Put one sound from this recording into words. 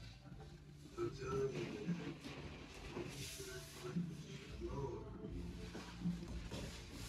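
A young child makes small vocal sounds close by.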